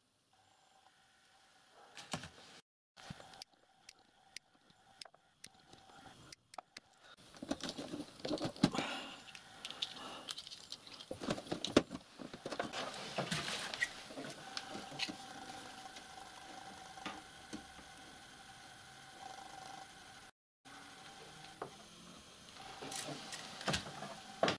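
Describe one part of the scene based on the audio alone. Wires rustle and click as hands handle them.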